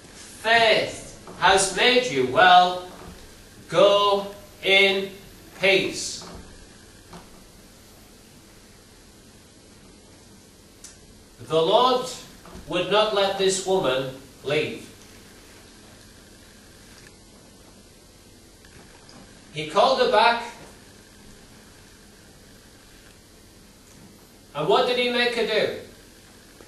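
A middle-aged man speaks slowly and with pauses through a microphone, in a reverberant hall.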